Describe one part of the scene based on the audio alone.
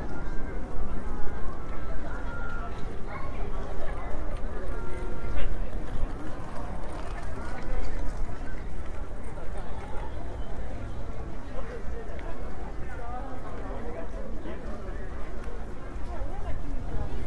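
A crowd of people chatter in the open air nearby.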